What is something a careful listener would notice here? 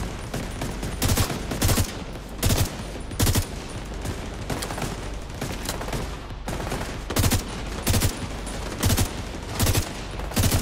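Rifle shots fire in short bursts, loud and close.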